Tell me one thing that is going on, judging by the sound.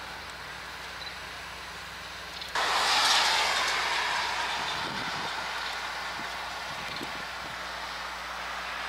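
A train rolls slowly along the tracks nearby.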